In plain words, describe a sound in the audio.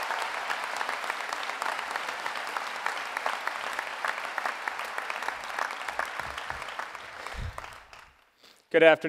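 A crowd applauds in a large hall and the applause fades away.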